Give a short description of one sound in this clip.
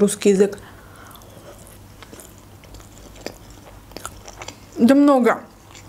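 A young woman chews food with soft, wet mouth sounds.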